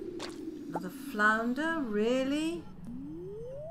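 A bright rising jingle plays as a fish is landed.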